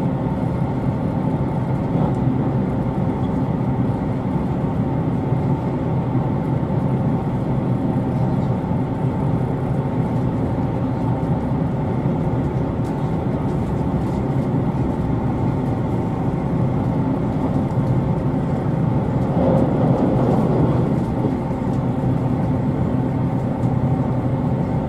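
The wheels of a train clatter over the rail joints.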